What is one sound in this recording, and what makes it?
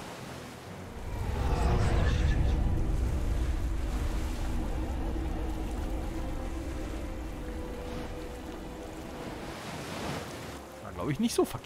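A deep magical rumble swells up and slowly fades.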